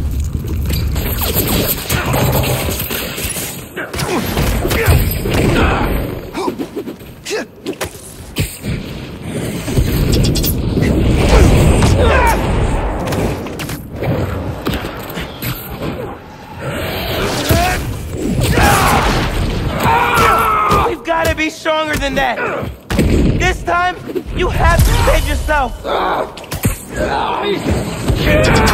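Heavy blows and crashes of a fight thud and clatter.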